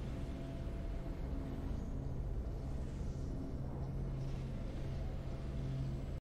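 Triumphant orchestral music swells.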